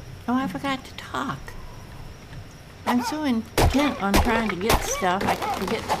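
Fists thump against a tree trunk.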